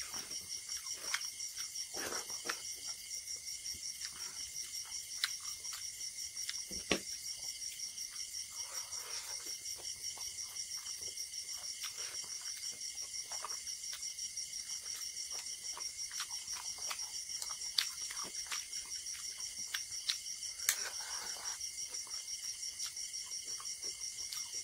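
Fingers squish and mix wet rice on a plate.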